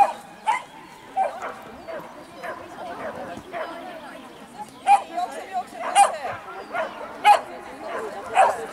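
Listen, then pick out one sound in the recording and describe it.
A small dog barks sharply again and again outdoors.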